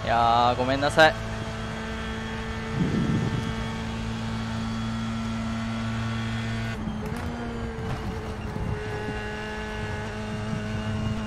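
A racing car engine hums steadily from the cockpit, shifting pitch through gear changes.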